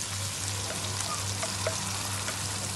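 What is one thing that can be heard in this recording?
Chopped tomatoes drop into a pan with soft thuds.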